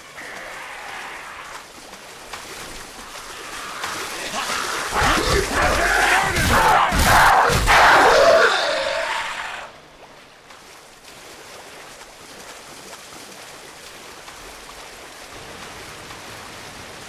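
Water sloshes and splashes as someone wades through it.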